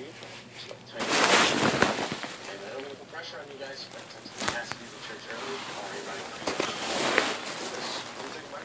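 Cloth rustles and scrapes against the microphone.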